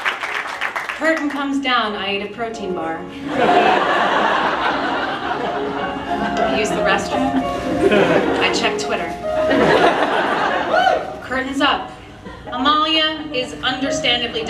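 A woman speaks with animation into a microphone, heard over a loudspeaker.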